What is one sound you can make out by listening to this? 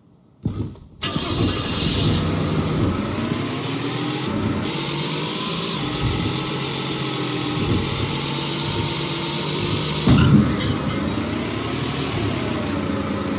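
A car engine starts, idles and revs unevenly.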